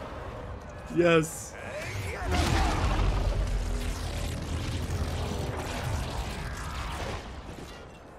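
Electric crackles and booms burst loudly.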